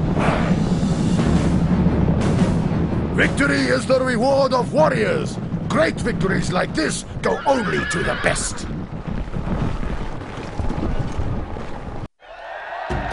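Many horses' hooves thunder across the ground.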